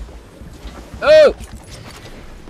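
A young man shouts out suddenly.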